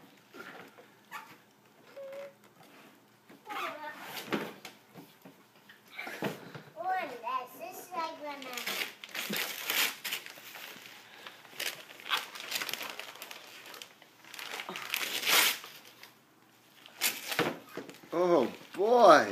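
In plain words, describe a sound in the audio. A toddler tears and rustles wrapping paper off a gift box.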